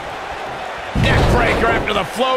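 A heavy thud sounds as a wrestler is struck.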